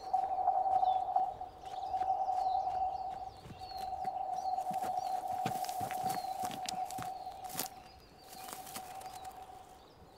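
Footsteps crunch through dry brush.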